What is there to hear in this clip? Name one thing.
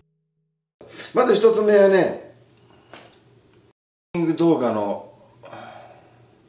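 A man speaks briefly and casually close by.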